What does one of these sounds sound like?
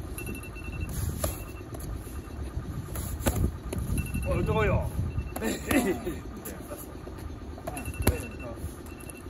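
Boxing gloves smack against focus mitts outdoors.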